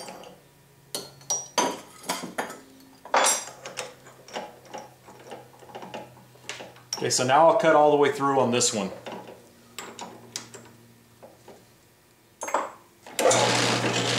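Metal shavings clink and scrape as a hand brushes them aside.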